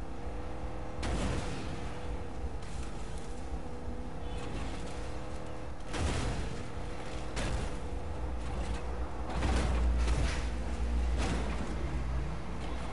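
A vehicle body bumps and rattles over rough ground.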